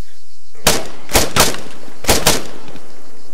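Several sharp gunshots ring out in quick succession.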